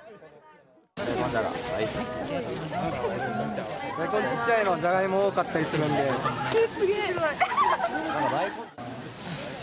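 Young women chat and laugh close by.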